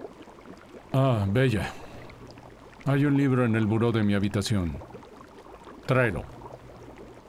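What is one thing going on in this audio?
A man answers in a low, relaxed voice.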